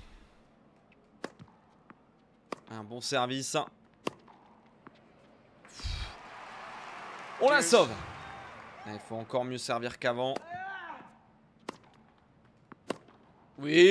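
A tennis ball is struck with sharp pops.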